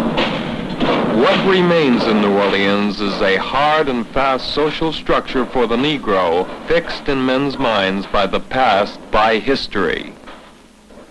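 A man talks loudly outdoors.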